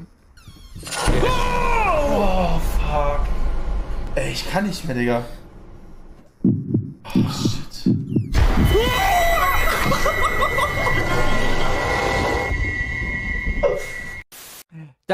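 Two men shout and laugh loudly.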